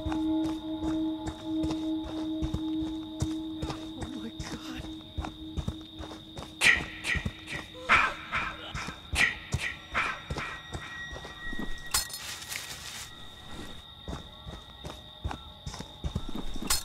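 Footsteps crunch quickly over leaves and dirt.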